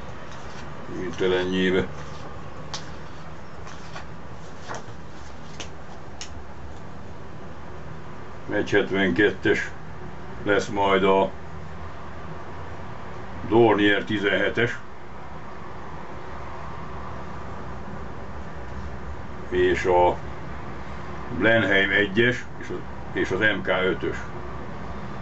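A middle-aged man speaks calmly in short bursts close by.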